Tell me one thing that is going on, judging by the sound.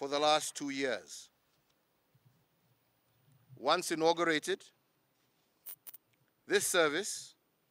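A middle-aged man speaks calmly and slowly into a microphone, with pauses between phrases.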